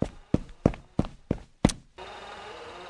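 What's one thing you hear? Quick footsteps tap up stairs.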